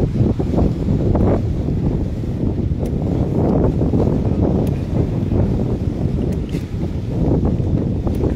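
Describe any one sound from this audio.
Wind gusts outdoors, rumbling loudly against the microphone.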